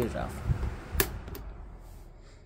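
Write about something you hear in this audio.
A switch on a fan clicks.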